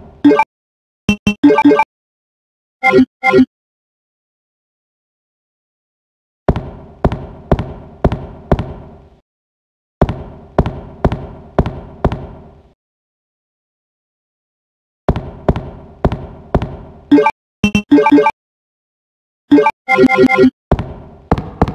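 Short electronic beeps chime from a game menu.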